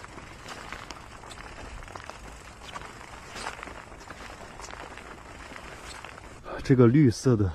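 A bicycle rolls along a paved path.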